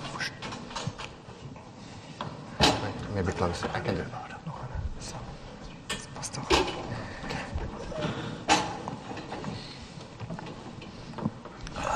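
Chairs scrape and knock as they are moved on a stage.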